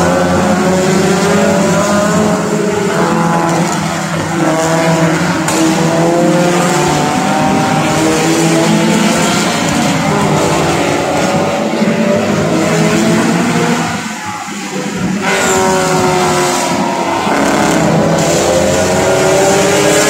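Racing car engines roar and whine around a track, rising and falling in pitch as they accelerate and pass.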